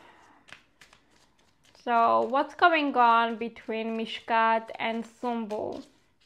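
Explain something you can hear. Cards shuffle and rustle in a woman's hands.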